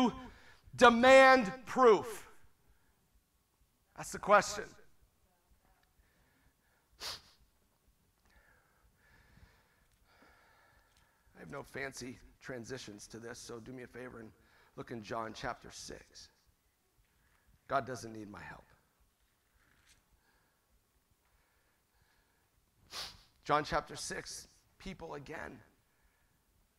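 A middle-aged man speaks through a microphone in bursts with long pauses.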